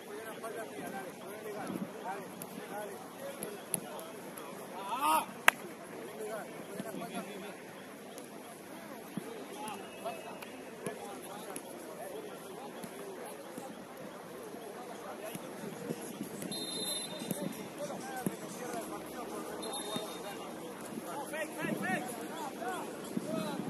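Young adult players shout and call to each other across an open outdoor pitch, some way off.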